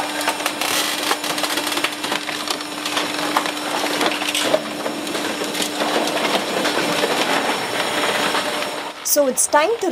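Scrap metal crunches and clanks as it is crushed.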